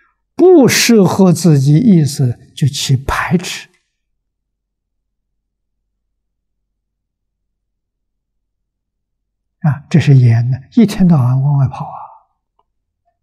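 An elderly man speaks calmly and clearly into a close microphone, with long pauses.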